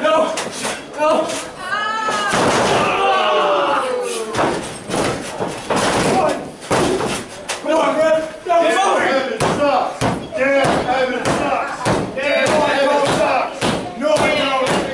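A small crowd of men and women cheers and shouts in a hall.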